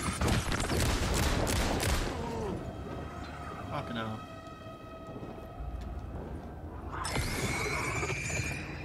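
A young man speaks into a microphone.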